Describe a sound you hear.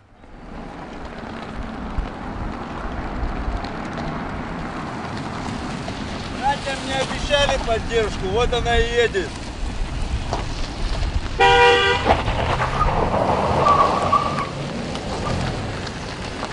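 Cars drive past with engines humming.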